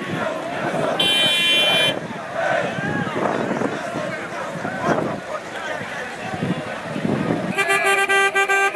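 A car horn honks.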